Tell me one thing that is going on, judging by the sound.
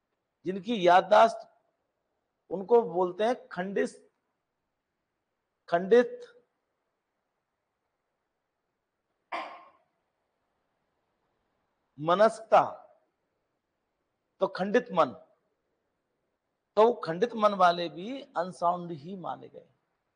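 A middle-aged man speaks loudly and firmly in short bursts, close to a microphone, with pauses between phrases.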